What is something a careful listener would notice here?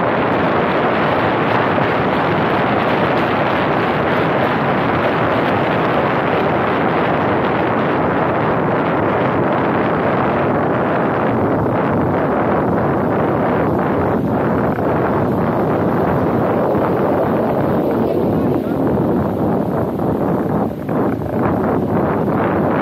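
Wind rushes over a moving car's roof, buffeting the microphone.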